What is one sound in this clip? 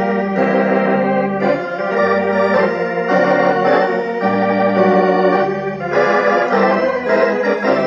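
An organ plays a slow piece of full, sustained chords close by.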